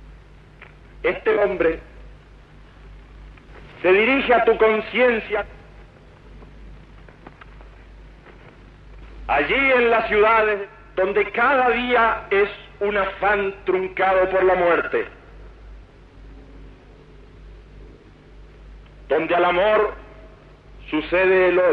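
A man speaks loudly to a crowd outdoors, in short bursts with pauses.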